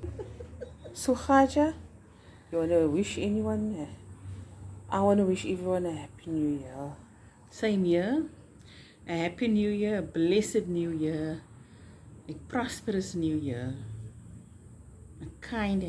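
A middle-aged woman speaks expressively close by.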